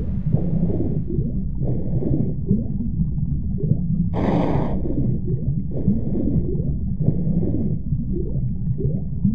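Water swooshes with each slow swimming stroke.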